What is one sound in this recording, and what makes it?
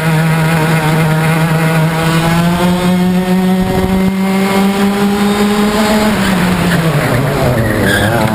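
A kart engine whines loudly up close, rising in pitch then dropping.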